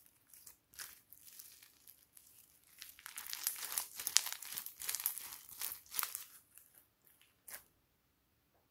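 Foam beads crackle and crunch as hands squeeze them.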